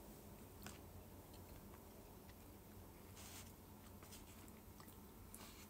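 A young woman makes small smacking mouth noises close by.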